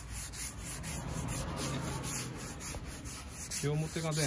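A cloth rubs and swishes across a wooden surface.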